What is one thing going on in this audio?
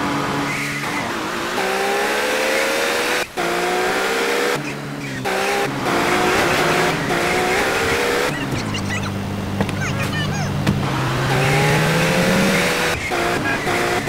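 A car engine hums and revs up and down as a car drives.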